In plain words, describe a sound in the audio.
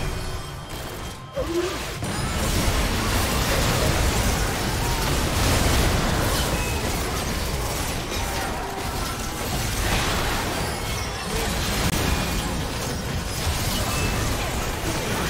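Spell blasts and clashing sound effects crackle and boom during a game battle.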